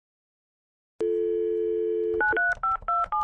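A phone dial tone hums steadily.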